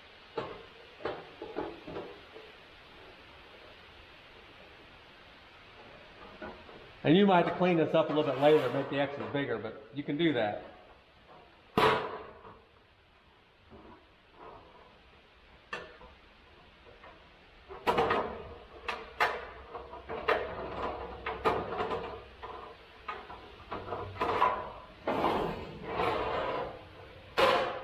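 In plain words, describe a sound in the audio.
Tin snips cut through sheet metal with sharp crunching snips.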